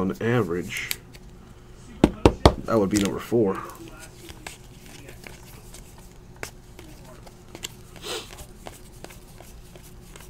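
Trading cards rustle and flick against each other in hands.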